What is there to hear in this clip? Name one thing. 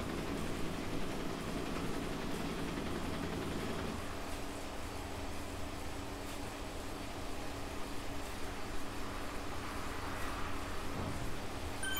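An indoor bike trainer hums steadily as a rider pedals.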